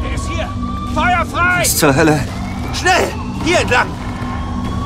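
A man shouts urgently.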